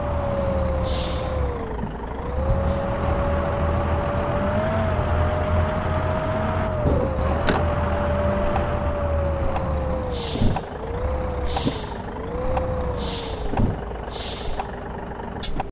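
A bus engine hums steadily, rising and falling in pitch as the bus speeds up and slows down.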